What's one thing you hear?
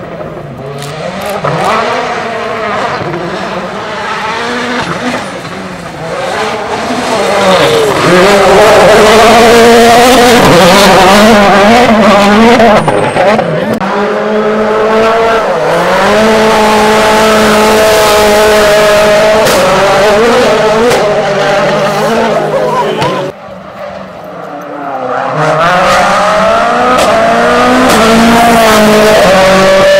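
A rally car engine roars and revs hard, rising and falling in pitch as cars pass close by.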